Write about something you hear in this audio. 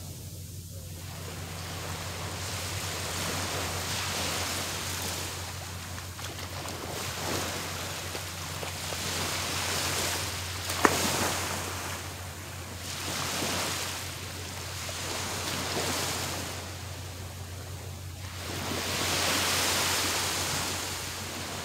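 Small waves wash gently onto a beach in a steady rhythm.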